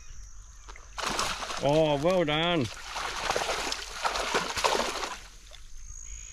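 Water splashes as a fish thrashes near the bank.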